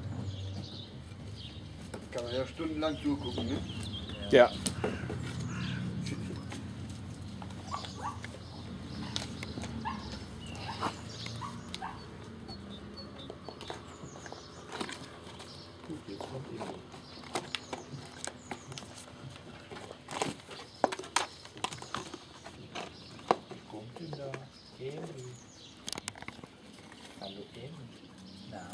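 A man talks calmly nearby outdoors.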